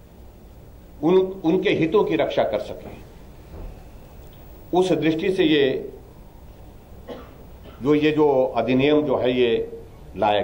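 A middle-aged man speaks calmly into microphones, with pauses.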